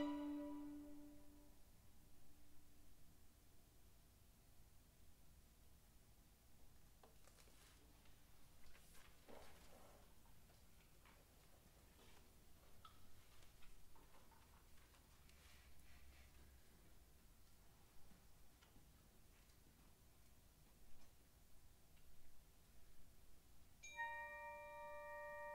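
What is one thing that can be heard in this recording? A small orchestra plays a held chord that fades, then later starts a new sustained chord.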